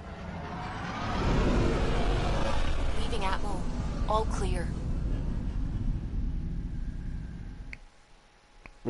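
A spacecraft roars as it flies up and away.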